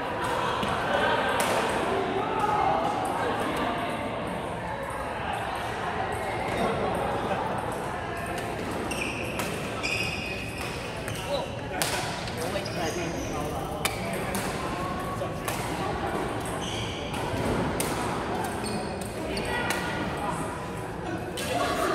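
A large indoor hall echoes with a crowd's busy chatter.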